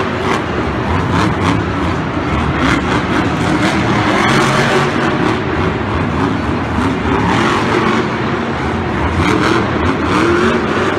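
A monster truck engine roars and revs loudly.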